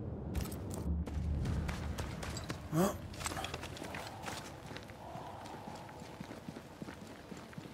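Footsteps crunch on a forest floor.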